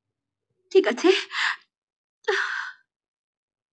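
A woman speaks sharply.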